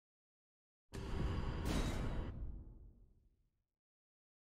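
A deep boom sounds and slowly fades away.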